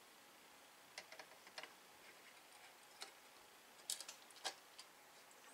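Small metal parts click and clink.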